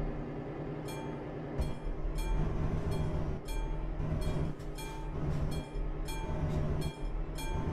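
A railway crossing bell rings rapidly.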